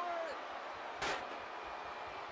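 A heavy body slams down with a loud thud.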